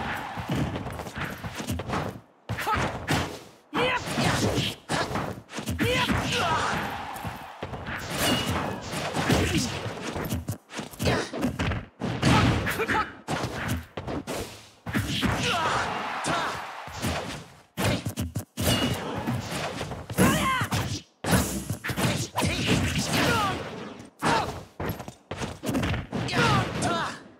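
Heavy hits land with sharp thumps.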